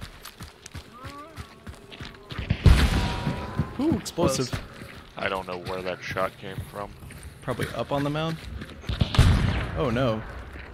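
Footsteps thud on wooden boards and crunch on grass.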